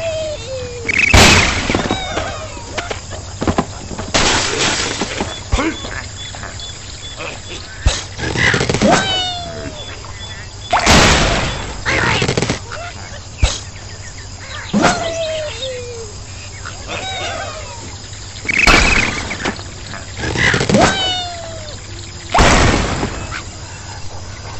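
Wooden blocks and glass crash and shatter as a tower collapses.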